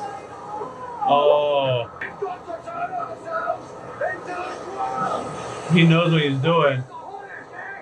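A man speaks from a show playing on a loudspeaker.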